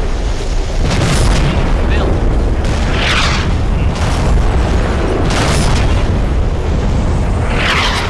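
A howitzer fires with heavy booms.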